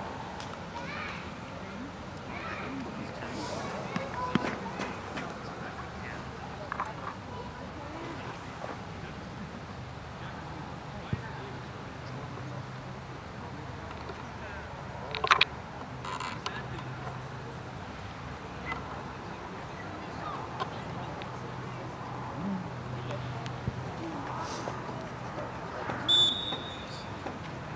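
Players shout to each other across an open field in the distance.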